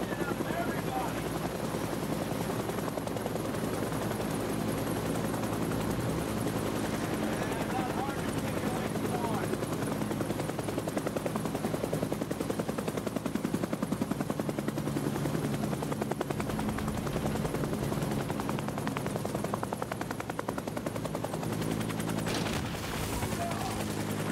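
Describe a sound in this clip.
A helicopter engine and rotor drone steadily inside the cabin.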